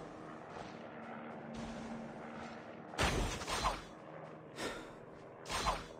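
Footsteps run through snow and grass.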